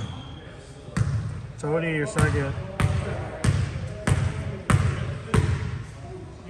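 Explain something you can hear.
A basketball bounces repeatedly on a wooden floor in a large echoing gym.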